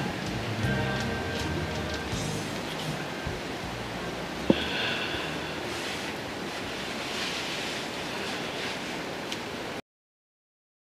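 A middle-aged woman sings into a close microphone.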